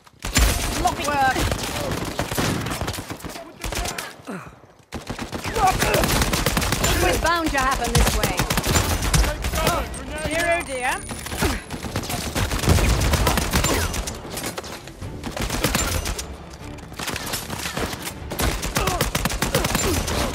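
Rifle shots fire in rapid bursts.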